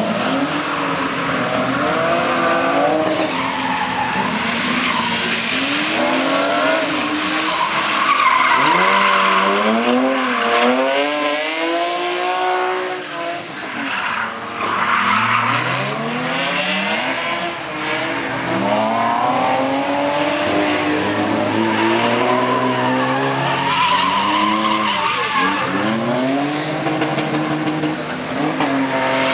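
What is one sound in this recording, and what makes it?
A car engine revs hard and whines up and down in pitch.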